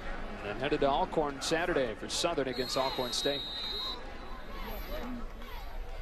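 A crowd murmurs and cheers in a large stadium.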